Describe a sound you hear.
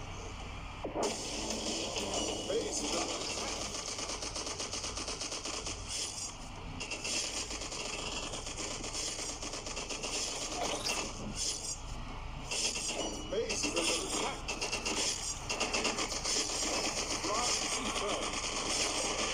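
Video game blasts and shots pop rapidly.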